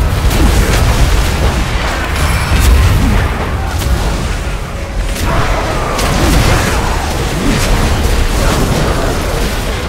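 Game battle sounds clash and crackle.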